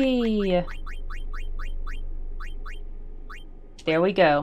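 Short electronic beeps chirp quickly one after another.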